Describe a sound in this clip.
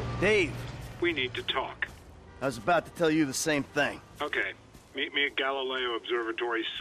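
A man talks on a phone, calmly and close by.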